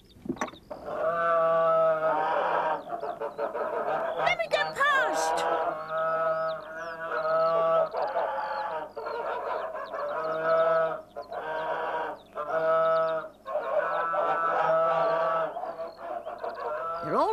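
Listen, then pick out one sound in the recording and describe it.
A young boy sings a cheerful tune.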